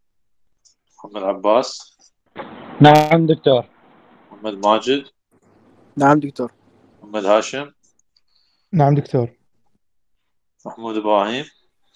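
Several men speak in short turns over an online call.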